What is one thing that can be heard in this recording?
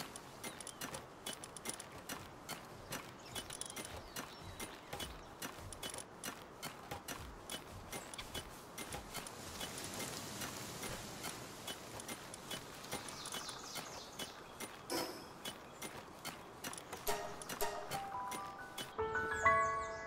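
Short interface clicks tick rapidly, one after another.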